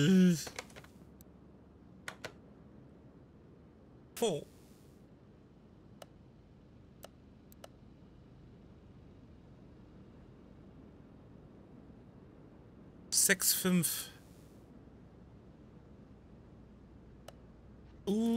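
Soft clicks sound as menu selections are made.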